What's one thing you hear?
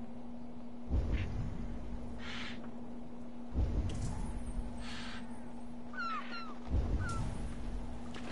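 A pole splashes and pushes through the water in slow, regular strokes.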